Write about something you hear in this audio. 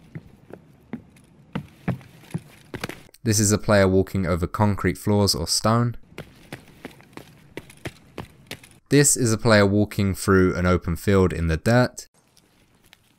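Footsteps tread steadily over hard ground.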